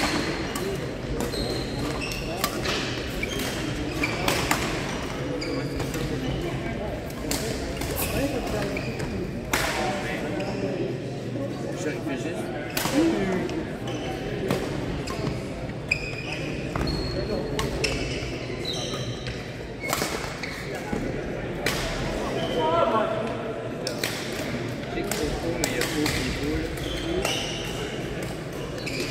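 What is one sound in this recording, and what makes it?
Shuttlecocks are struck with rackets in sharp pops.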